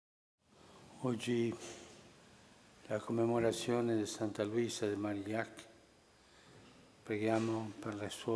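An elderly man speaks slowly and calmly into a microphone in a large echoing room.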